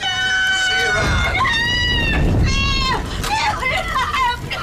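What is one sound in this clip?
A fire bursts into flames with a loud whoosh.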